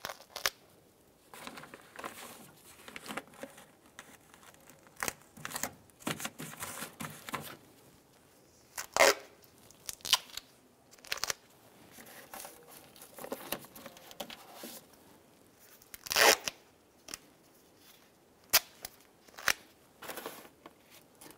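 A plastic sheet crinkles and rustles under gloved hands.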